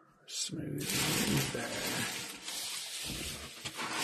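A foil wrapper crinkles and rustles as it is set down.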